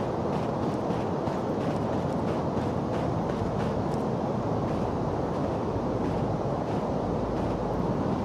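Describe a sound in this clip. Footsteps crunch softly in snow.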